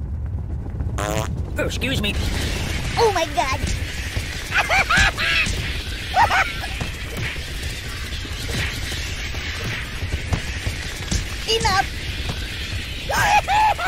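A swarm of bats flaps and screeches loudly.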